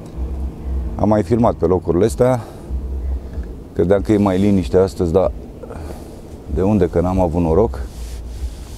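A middle-aged man speaks calmly into a clip-on microphone.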